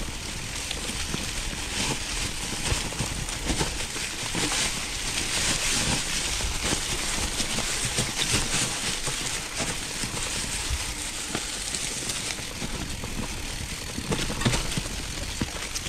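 Bicycle tyres crunch and rustle over dry fallen leaves.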